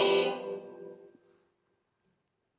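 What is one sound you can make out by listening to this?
A live band's final chord rings out and fades away.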